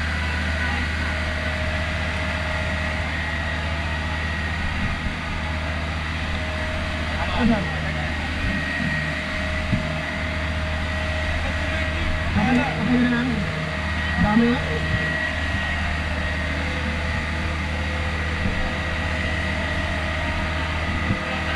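A fire truck's pump engine drones steadily up close.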